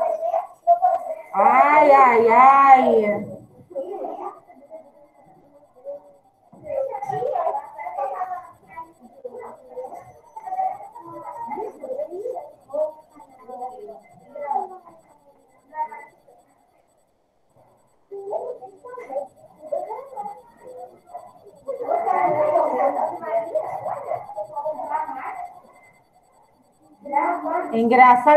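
A woman speaks calmly and clearly into a close microphone, as in an online call.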